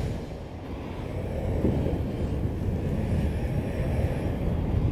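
A deep crackling energy rumbles and roars steadily.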